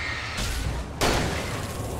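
A gunshot fires loudly.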